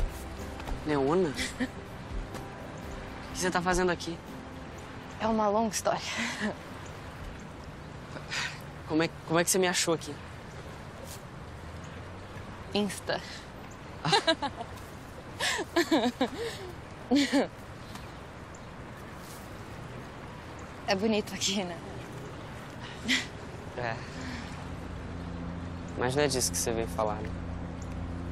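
A young woman speaks playfully, close by.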